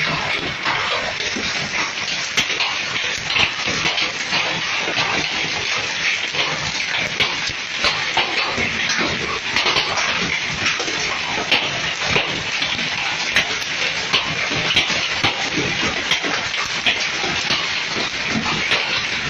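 Hail pelts down hard, with many sharp clicks on the pavement and cars.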